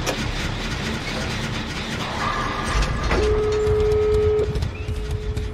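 A generator engine rattles and clanks while being repaired.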